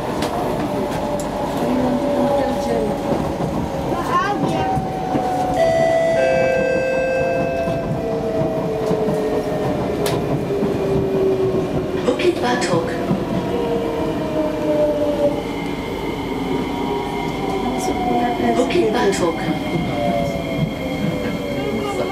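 A train rumbles along the track with a steady roar.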